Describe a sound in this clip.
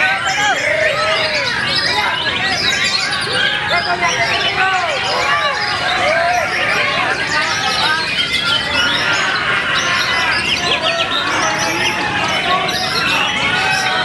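A songbird sings a busy, varied song of chirps, trills and whistles close by.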